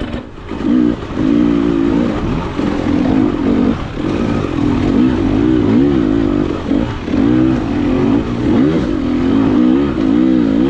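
Tyres crunch over a rough dirt trail.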